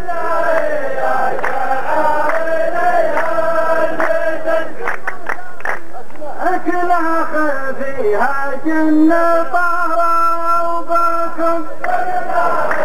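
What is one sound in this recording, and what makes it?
A man chants a poem loudly through a microphone.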